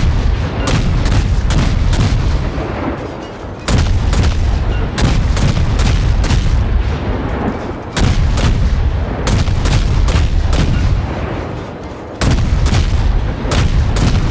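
Shells explode with deep rumbling blasts.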